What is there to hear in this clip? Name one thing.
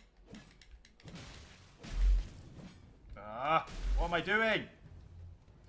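Flames burst with a loud whoosh.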